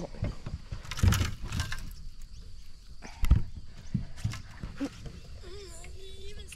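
A fish splashes in water.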